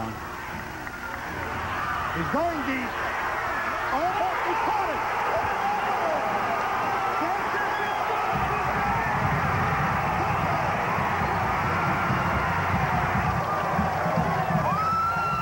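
A large crowd cheers and roars loudly outdoors.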